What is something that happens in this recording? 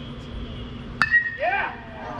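A bat hits a ball with a sharp crack.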